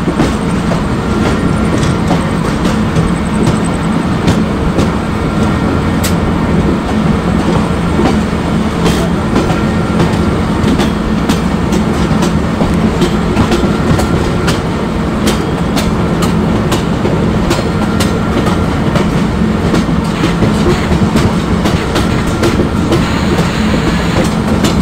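Train wheels clack over rail joints at irregular intervals.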